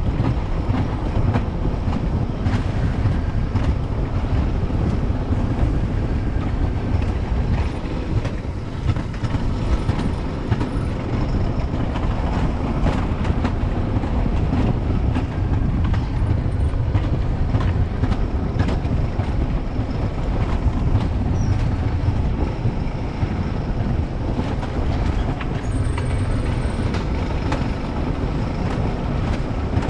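Wind rushes loudly past at speed.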